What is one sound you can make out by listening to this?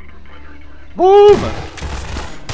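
A shotgun fires once, loud and sharp.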